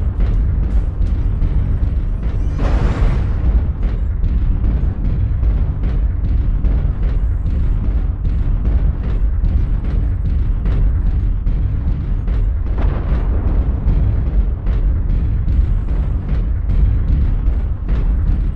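Heavy metal footsteps thud in a steady rhythm.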